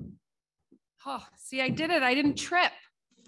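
A young woman speaks into a microphone with animation, heard over a loudspeaker in an echoing room.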